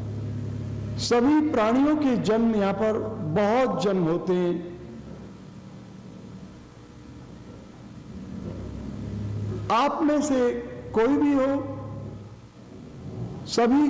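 An elderly man recites in a slow, sing-song voice close to a microphone.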